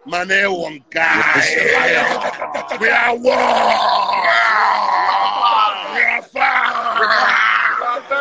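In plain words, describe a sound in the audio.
Several men sing loudly together, heard through a phone.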